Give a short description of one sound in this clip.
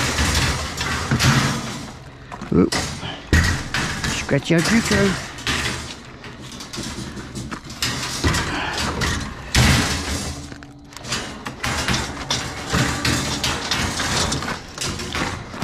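Metal carts scrape against the truck bed.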